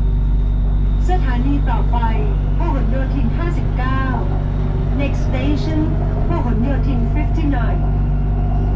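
A passing train rushes by close by with a whooshing, squealing sound.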